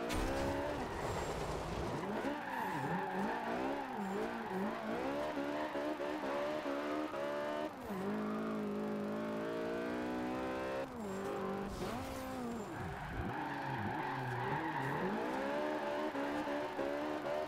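A car engine revs hard and rises and falls in pitch through gear changes.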